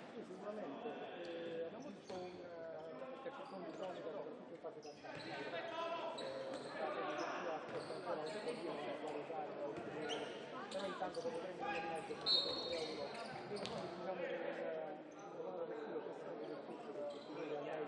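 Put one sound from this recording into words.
Men shout and call to each other across a large echoing hall.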